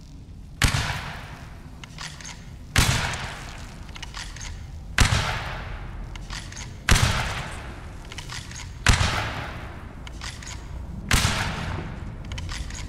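A rifle fires loud shots that echo off rock walls.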